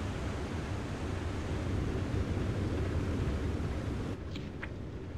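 Sea water rushes steadily past a boat's hull.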